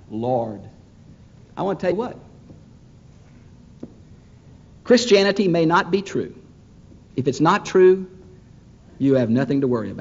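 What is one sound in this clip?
A middle-aged man preaches with emphasis through a microphone, in bursts with pauses, in a large echoing hall.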